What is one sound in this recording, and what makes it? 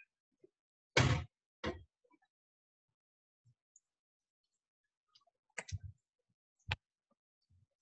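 A whisk clanks against a metal pan.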